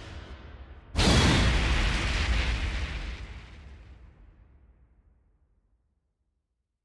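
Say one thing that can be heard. A heavy booming impact crashes and slowly rumbles away.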